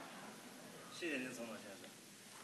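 Another man speaks briefly and calmly through a microphone.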